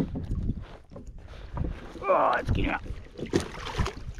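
A hooked fish thrashes and splashes at the water's surface.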